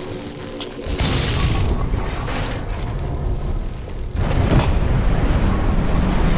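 A low rumble drones steadily.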